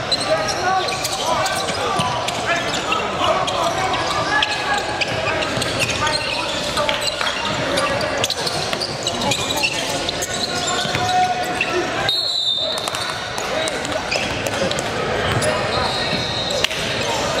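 Spectators and players chatter in the background.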